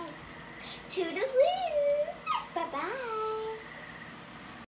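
A young girl sings in a high, wavering voice close by.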